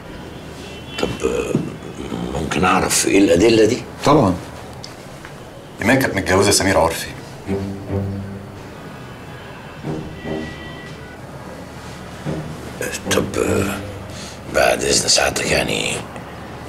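A middle-aged man speaks calmly and seriously, close by.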